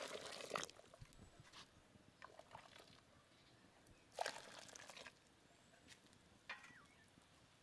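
Water splashes as a ladle pours it into a pot.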